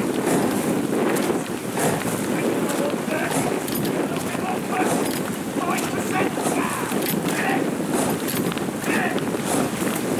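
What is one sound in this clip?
Oar blades splash and catch in river water as an eight-oared rowing boat is rowed.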